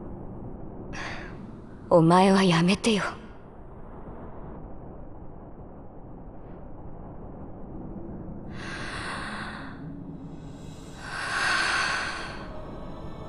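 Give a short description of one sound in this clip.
A young woman speaks sternly and close by.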